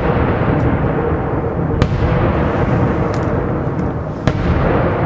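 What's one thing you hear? A volcano erupts with a deep, steady roar.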